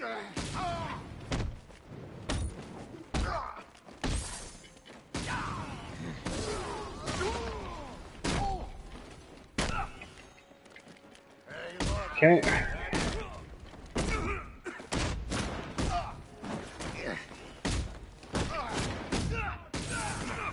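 Punches and kicks land with heavy thuds, again and again, in a fast brawl.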